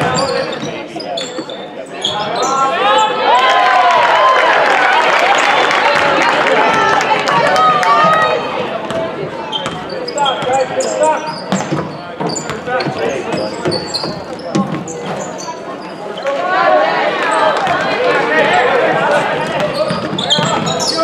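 A crowd murmurs and cheers in a large echoing gym.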